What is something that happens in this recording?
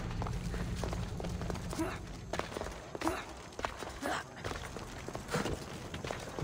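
Footsteps land with soft thuds on stone as someone jumps from block to block.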